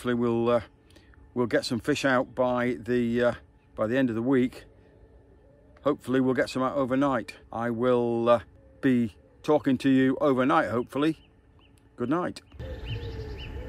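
An older man speaks calmly and close up.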